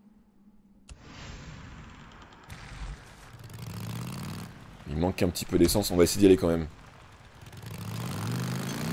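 A motorbike engine rumbles and revs steadily.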